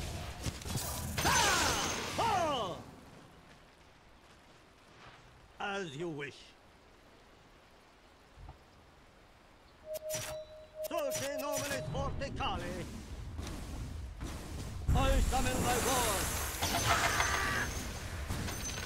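Fantasy battle sound effects clash, whoosh and crackle.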